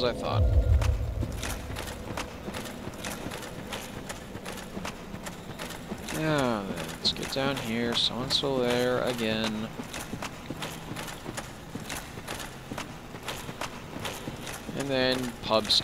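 Heavy footsteps clunk steadily on a wooden surface.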